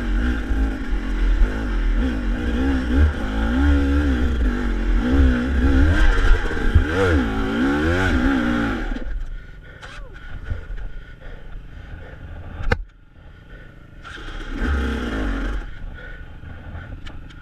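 A dirt bike engine revs hard and labours up close, then drops to a low idle.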